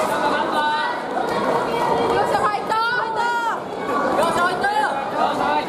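A crowd of young people shouts and cheers in an echoing hall.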